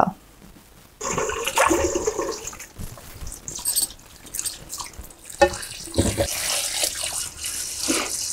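Wet cloth splashes and squelches in water.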